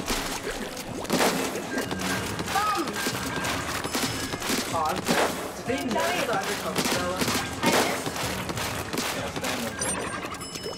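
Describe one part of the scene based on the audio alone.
A paint gun sprays and splatters in rapid bursts.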